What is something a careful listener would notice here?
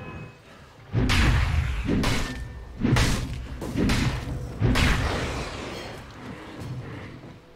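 Video game combat clashes with sharp hits.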